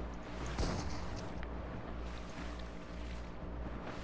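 Water splashes as a game character swims.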